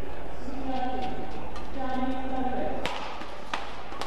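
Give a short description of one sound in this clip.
Rackets sharply strike a shuttlecock back and forth.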